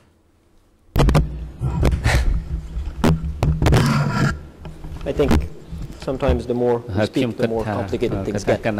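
A man speaks steadily into a microphone in a large room.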